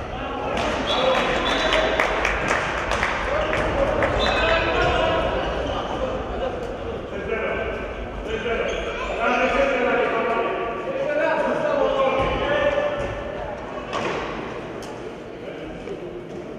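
Shoes squeak on a hard floor in an echoing hall.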